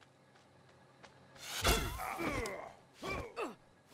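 A blowgun fires a dart with a short, sharp puff.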